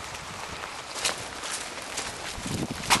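Footsteps squelch through mud.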